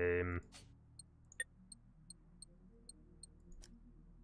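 Soft menu clicks tick at a steady pace.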